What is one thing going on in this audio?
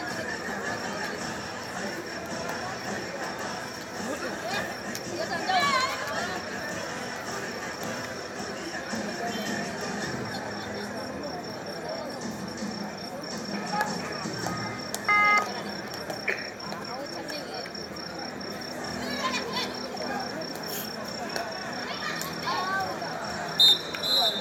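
Young women shout and call out during play.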